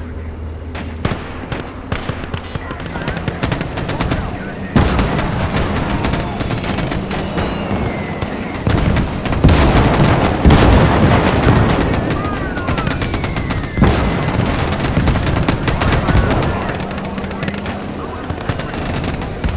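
Tank guns fire in rapid bursts of loud bangs.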